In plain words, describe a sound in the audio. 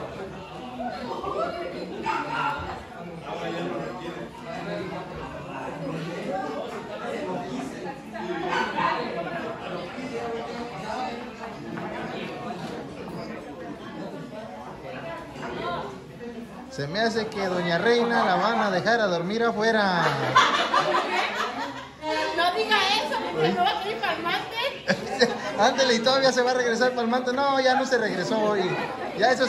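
Several women chatter and talk over each other nearby.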